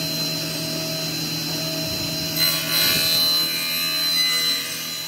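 A table saw motor hums steadily.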